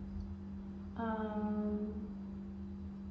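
A young woman hums a short note.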